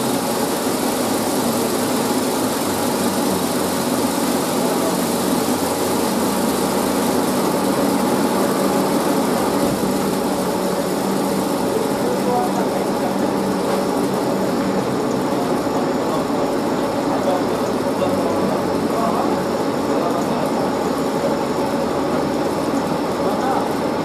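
A grain dryer runs with a steady mechanical hum and rumble.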